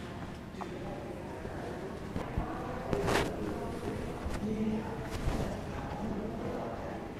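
Men and women talk quietly in the background of an echoing room.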